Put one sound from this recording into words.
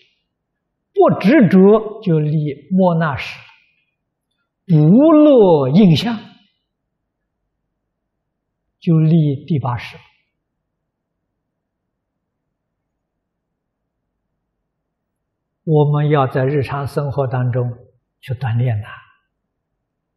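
An elderly man speaks calmly and warmly into a microphone, pausing between phrases.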